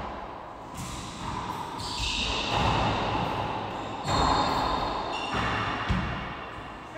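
A racquetball smacks hard off the walls of an echoing court.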